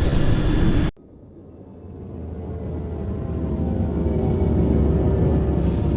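A small craft hums as it hovers and descends.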